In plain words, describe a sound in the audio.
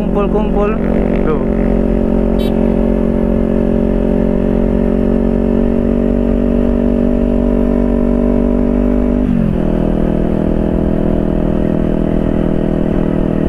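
A motorcycle engine hums steadily up close, dropping in pitch briefly as it shifts.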